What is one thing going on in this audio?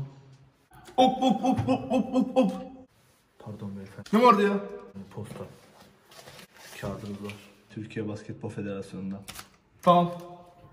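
A young man talks excitedly close by.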